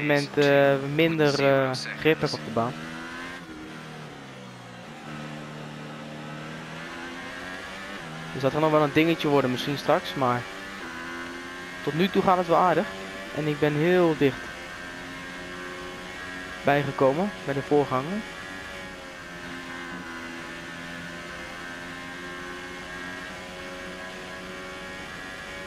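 A Formula One car's turbocharged V6 engine revs high as it accelerates through the gears.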